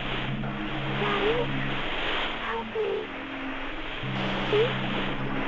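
A young woman speaks briefly and quietly into a microphone.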